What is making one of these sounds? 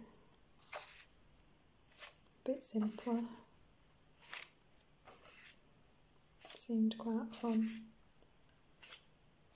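Paper pages rustle and flip as a book is leafed through, close by.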